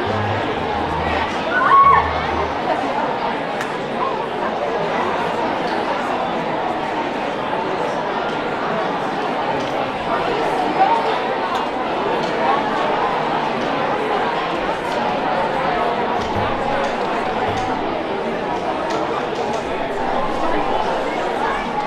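A large audience chatters in a big echoing hall.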